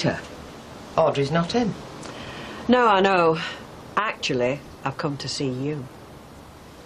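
A woman speaks calmly and firmly, close by.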